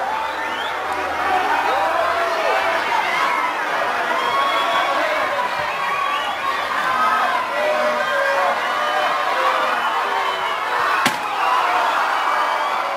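A crowd shouts and cheers loudly all around.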